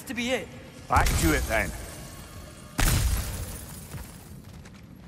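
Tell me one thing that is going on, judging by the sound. A magical burst crackles and booms.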